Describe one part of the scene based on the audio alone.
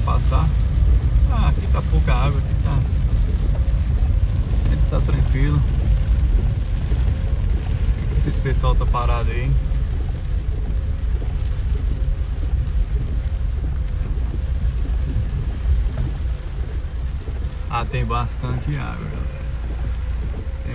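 Rain patters on a car's windshield.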